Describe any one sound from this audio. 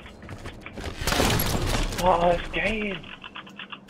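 A rifle fires a loud rapid burst.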